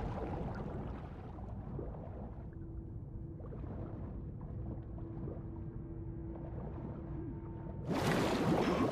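Water gurgles and rumbles low and muffled, as if heard from underwater.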